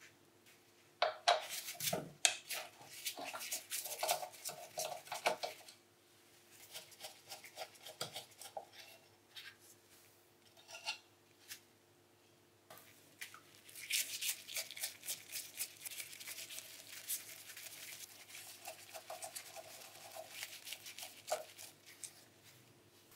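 A screwdriver scrapes and clicks against metal parts.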